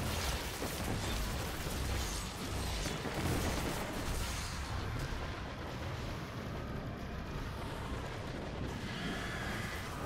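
Magical blasts whoosh and roar.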